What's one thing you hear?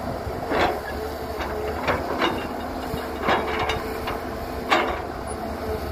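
Dirt and rocks clatter into a truck's metal bed.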